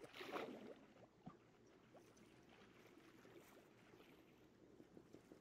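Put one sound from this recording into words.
Water swirls softly during underwater swimming.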